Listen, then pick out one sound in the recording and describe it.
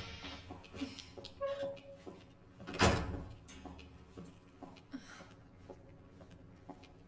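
Footsteps knock slowly on a hard floor.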